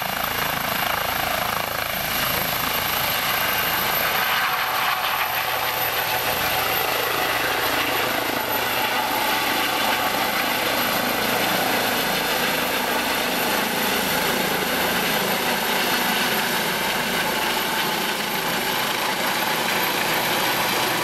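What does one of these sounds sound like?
A helicopter's engine roars loudly as it lifts off and climbs.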